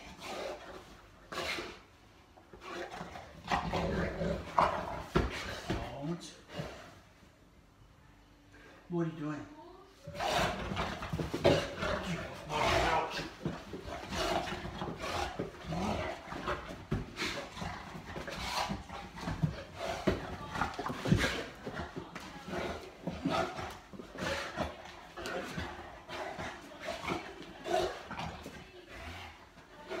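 A large mastiff grunts and growls in play.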